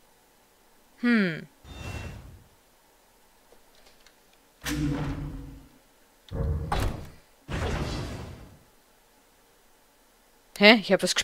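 A game menu chimes and whooshes as options are picked.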